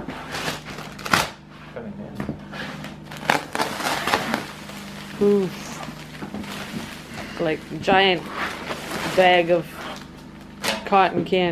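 Plastic wrapping crinkles and tears as it is pulled open.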